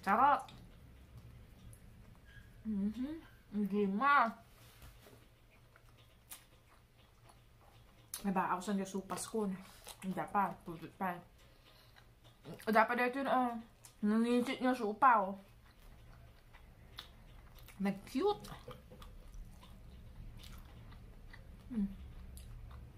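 A woman chews and smacks her lips while eating.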